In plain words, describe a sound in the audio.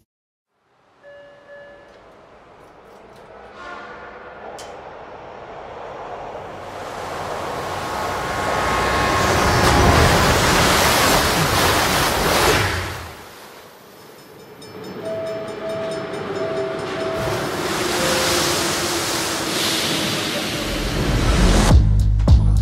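Music from a film trailer plays loudly, swelling and falling away.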